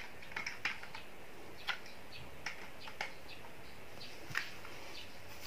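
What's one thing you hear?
Plastic toy cars clack as a hand stacks them.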